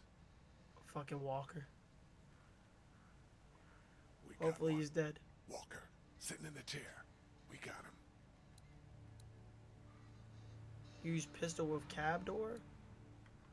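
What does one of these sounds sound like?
A young man talks casually into a microphone, close up.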